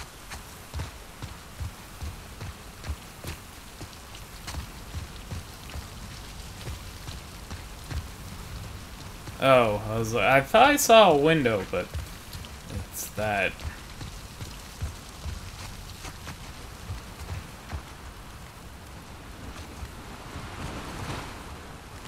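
Footsteps thud softly on grass and dirt at a steady walking pace.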